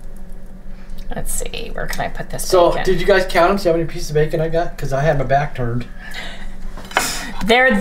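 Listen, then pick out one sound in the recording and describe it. A plate scrapes and clinks on a hard counter.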